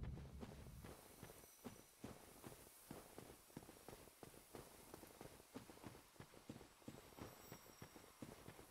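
Armoured footsteps thud and clink on stone at a steady walking pace.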